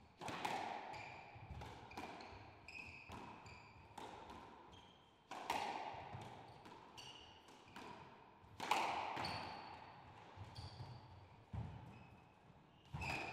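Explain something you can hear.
A squash ball smacks hard against the walls, ringing through an echoing court.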